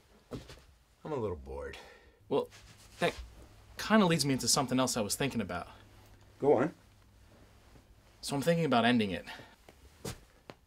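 A middle-aged man talks with animation, close by.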